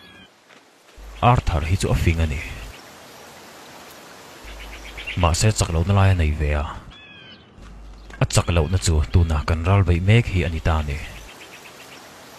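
A younger man speaks in a low, tense voice, close by.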